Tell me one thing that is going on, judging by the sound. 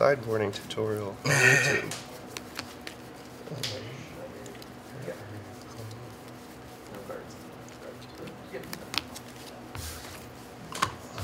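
Playing cards in sleeves click and shuffle softly between hands.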